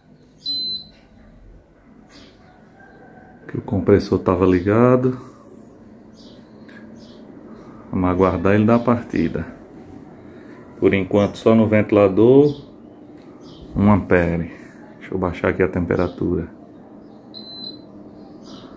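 A remote control beeps sharply when a button is pressed.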